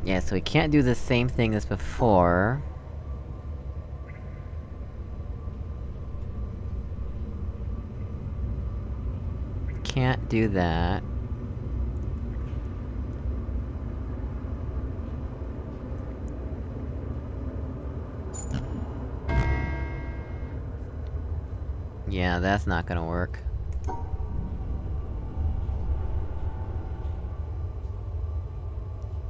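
An electric puzzle panel hums low and steadily.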